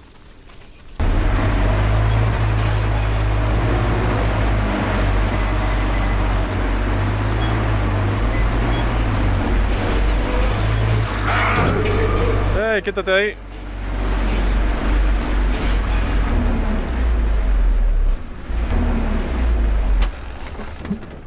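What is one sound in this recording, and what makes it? A vehicle engine rumbles loudly and steadily while driving.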